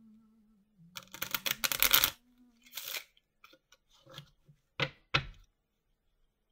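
Playing cards rustle and flick as they are shuffled by hand.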